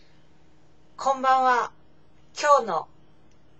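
A young woman speaks softly and close up, in two short phrases.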